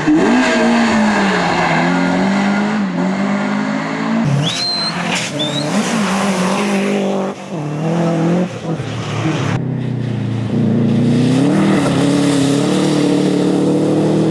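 Tyres hiss and splash on a wet road.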